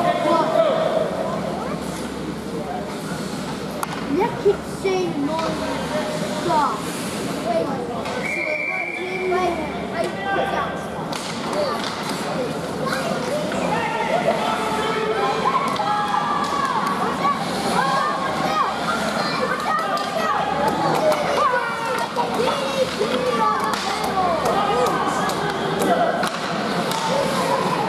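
Young players shout and call out across an echoing ice rink.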